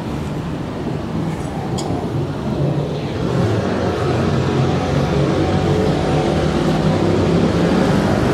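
A van engine idles close by and grows louder as it draws near.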